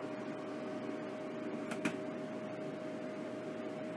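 A plastic lid is placed onto a dehydrator with a light clack.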